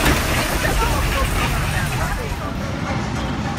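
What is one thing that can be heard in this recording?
A roller coaster rattles and rumbles along its track close by.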